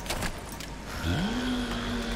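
A tool hums and whirs with a rising tone.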